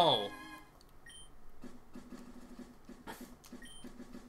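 Short electronic menu beeps chime.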